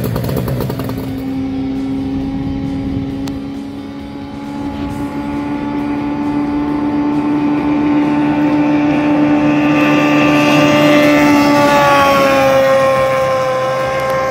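A racing boat's engine whines at high speed and grows louder as it nears.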